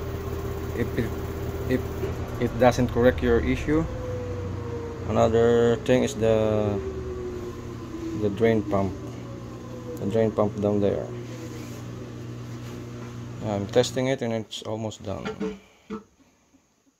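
A washing machine hums steadily, then falls silent.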